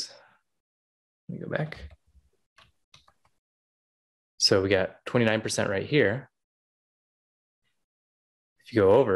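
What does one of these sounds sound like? A man speaks calmly and closely into a microphone, pausing between phrases.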